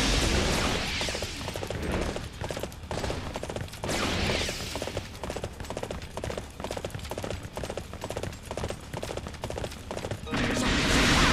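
A horse gallops with quick, steady hoofbeats.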